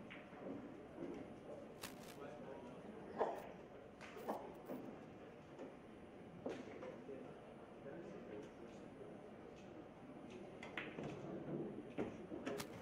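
A crowd murmurs softly in a large room.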